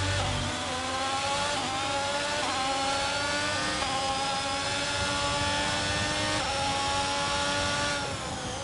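A racing car engine screams as it climbs through the gears, dropping in pitch with each shift.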